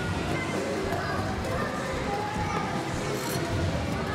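Ice skate blades scrape across ice.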